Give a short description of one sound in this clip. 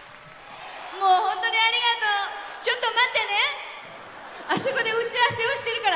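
A young woman speaks animatedly through a microphone over loudspeakers.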